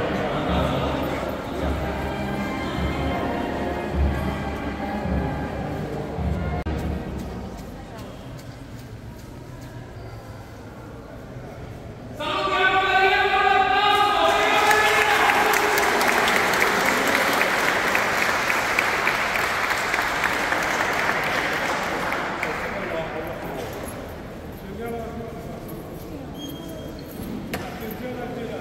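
A crowd of people murmurs in a large echoing hall.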